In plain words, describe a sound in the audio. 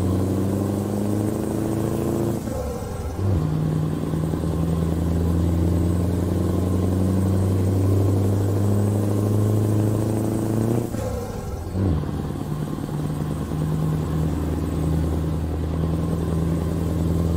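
A truck engine hums steadily, dipping briefly as gears change.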